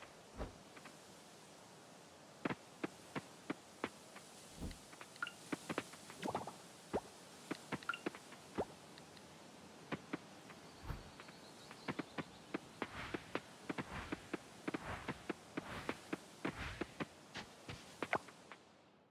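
Quick light footsteps patter on dirt.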